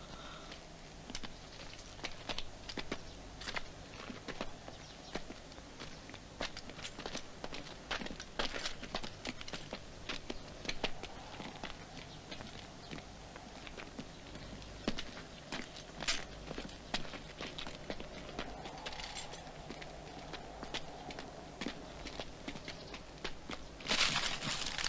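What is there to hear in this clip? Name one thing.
Footsteps crunch on loose stones.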